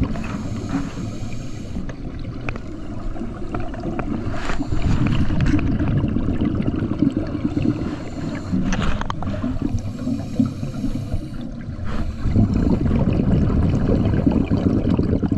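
Scuba bubbles rumble and gurgle underwater as a diver breathes out.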